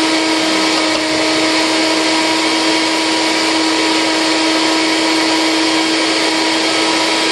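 A refrigerator hums steadily.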